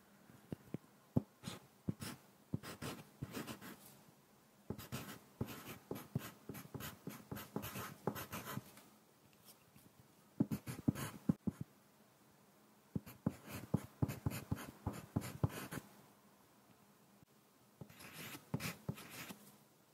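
A pencil scratches on paper in short bursts.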